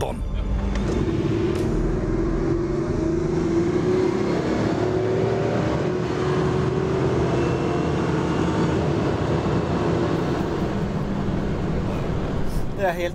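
A car engine revs hard and rises in pitch as it accelerates.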